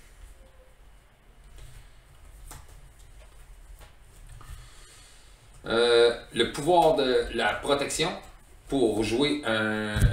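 Playing cards shuffle and rustle in hands.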